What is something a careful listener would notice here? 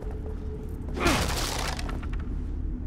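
Wooden planks smash and splinter.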